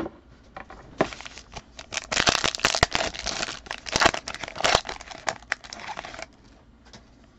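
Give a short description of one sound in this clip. Plastic wrapping crinkles and rustles as hands tear open a pack.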